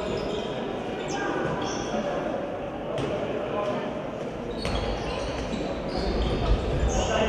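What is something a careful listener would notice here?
A ball thuds as players bounce and pass it.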